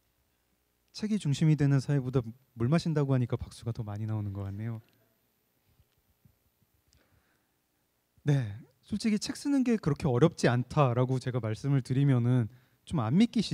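A man speaks calmly through a microphone in a large hall.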